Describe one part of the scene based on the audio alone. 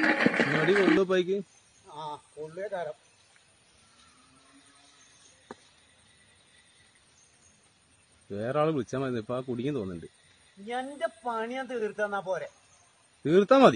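An elderly man speaks loudly nearby.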